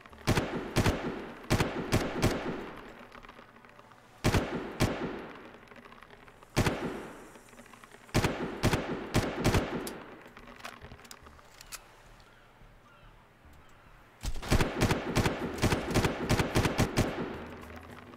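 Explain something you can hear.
A rifle fires in short bursts of loud shots that echo away.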